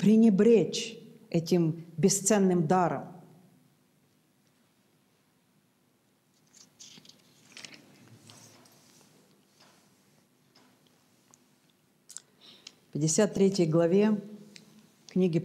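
A middle-aged woman speaks calmly and clearly into a close microphone.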